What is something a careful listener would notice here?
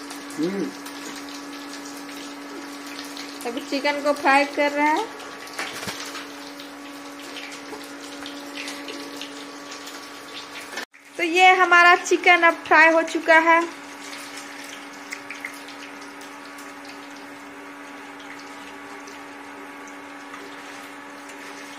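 A metal spatula scrapes and stirs food in a pan.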